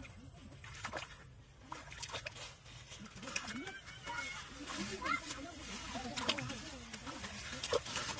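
Bare feet splash through shallow water.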